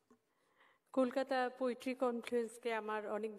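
A second woman speaks calmly into a microphone at a lectern over loudspeakers.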